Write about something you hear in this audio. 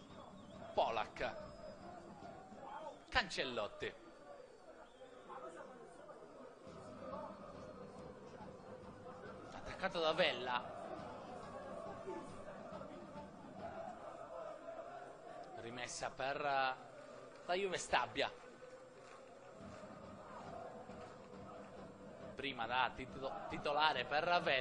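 A crowd murmurs and calls out in an open-air stadium.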